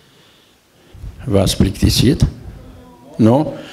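An elderly man speaks into a microphone, heard through a loudspeaker in a reverberant hall.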